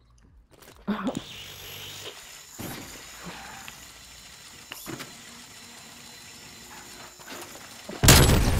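A small remote-control car's motor whirs steadily as it drives.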